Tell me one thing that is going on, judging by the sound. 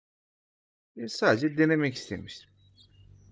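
A young man speaks into a microphone close by.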